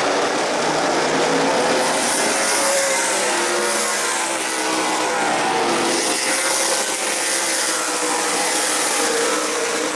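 Race car engines roar loudly as cars speed past.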